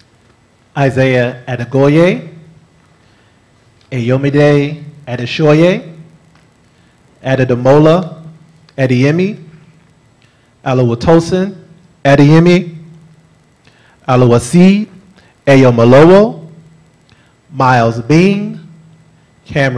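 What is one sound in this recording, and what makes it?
A man reads out through a microphone, with short pauses between phrases.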